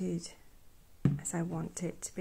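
A ceramic plate clinks as it is set down on a wooden table.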